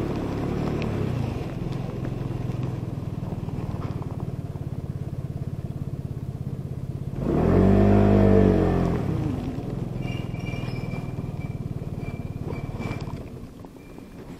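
A scooter engine hums steadily nearby.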